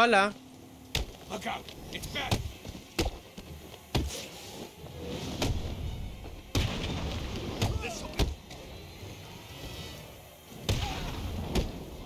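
Punches thud and crack in a fight.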